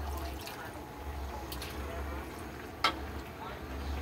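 Liquid pours into a metal pan.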